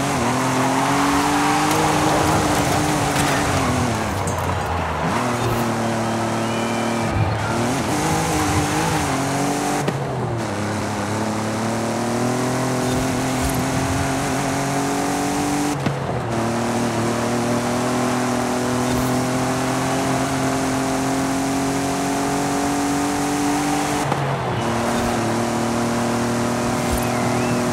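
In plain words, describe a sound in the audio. A sports car engine roars, revving up through the gears with brief drops at each shift.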